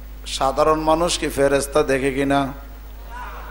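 A man preaches loudly into a microphone in a chanting voice, heard through a loudspeaker.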